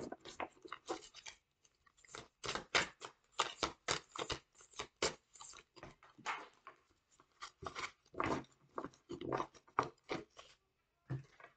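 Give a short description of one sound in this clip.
Playing cards are shuffled with quick riffling clicks.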